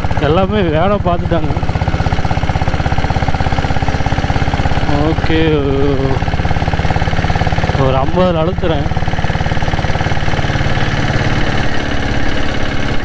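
A motorcycle engine rumbles steadily up close while riding.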